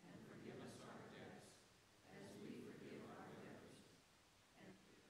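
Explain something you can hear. A crowd of people murmurs and shuffles in a large echoing hall.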